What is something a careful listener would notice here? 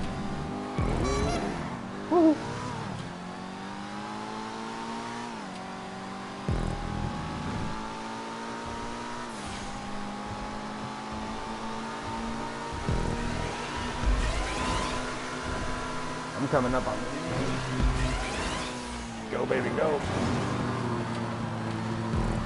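A sports car engine roars steadily, its pitch rising through the gears and dropping at each shift.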